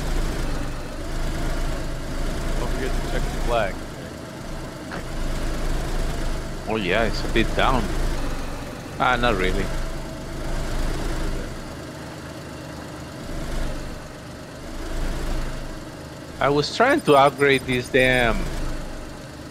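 A truck engine rumbles steadily as the vehicle drives slowly.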